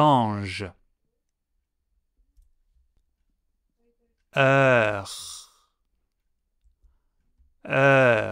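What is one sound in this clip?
A man speaks clearly and slowly into a close microphone, pronouncing short words with pauses between them.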